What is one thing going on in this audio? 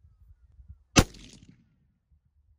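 A rifle fires a single sharp shot outdoors.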